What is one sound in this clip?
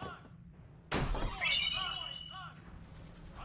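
A short bright chime rings out.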